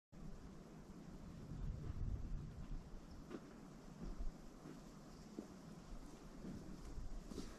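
Wind rumbles outdoors in gusts.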